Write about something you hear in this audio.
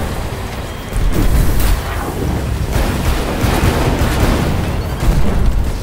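Fiery explosions roar.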